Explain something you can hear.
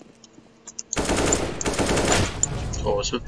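An assault rifle fires rapid shots.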